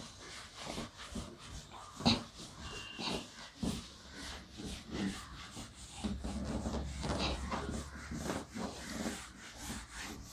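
A whiteboard eraser rubs and squeaks across a board.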